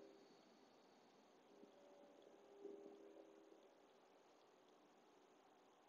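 A man breathes slowly and deeply.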